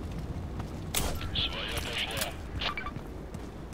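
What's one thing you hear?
A rifle fires in short bursts.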